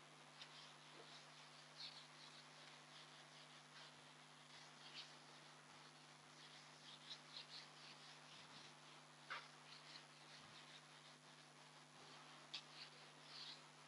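A whiteboard eraser rubs softly across a board.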